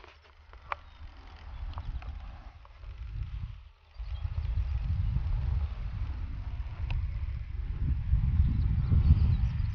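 A small propeller plane drones overhead.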